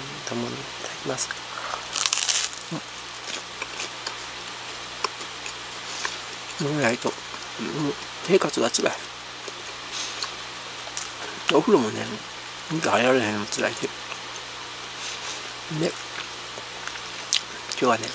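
A woman chews bread with soft mouth noises.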